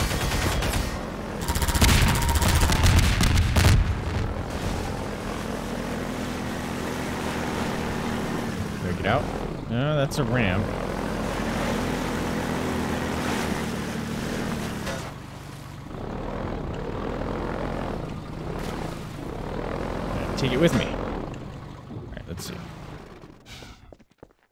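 A vehicle engine drones steadily.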